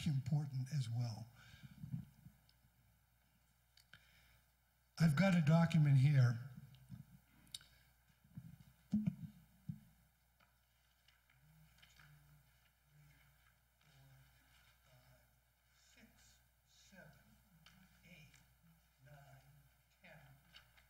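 A man speaks calmly to an audience through a microphone in a large room.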